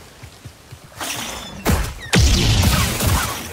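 A lightsaber hums and swooshes through the air.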